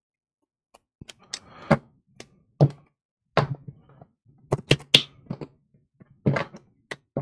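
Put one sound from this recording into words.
Playing cards riffle and slap together as they are shuffled by hand.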